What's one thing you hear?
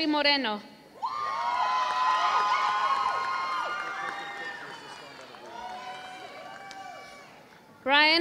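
A crowd applauds and cheers in a large echoing hall.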